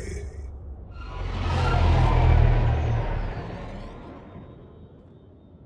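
Starships roar overhead with a deep rumble.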